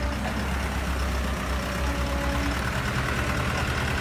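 A truck engine drones as the truck drives off.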